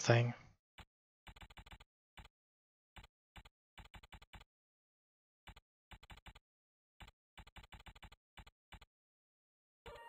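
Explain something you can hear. Soft clicks tick in quick bursts.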